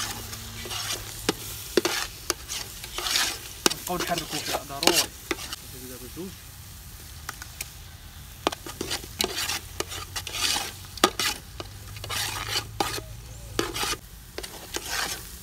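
A metal spatula scrapes and clatters against the inside of a metal pot.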